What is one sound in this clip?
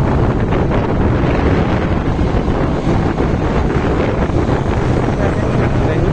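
Wind rushes loudly past a moving vehicle outdoors.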